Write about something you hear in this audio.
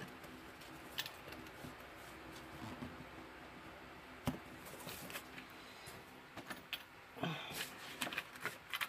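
Small plastic and metal pieces click and tap on a table.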